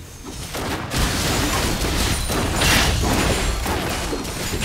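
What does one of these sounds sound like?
Magic blasts and weapon hits crash and whoosh in a fast game battle.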